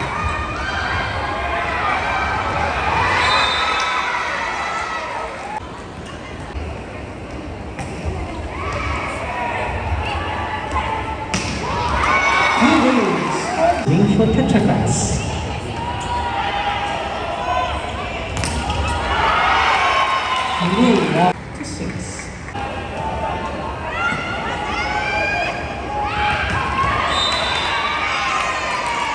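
Young women shout calls to each other on court.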